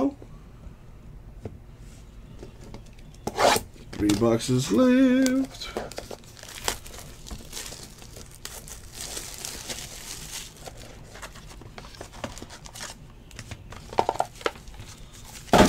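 Cards rustle and slide against each other in hands.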